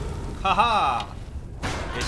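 A fire blast roars and crackles.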